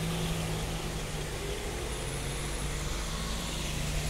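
A van's engine hums as it drives slowly past close by.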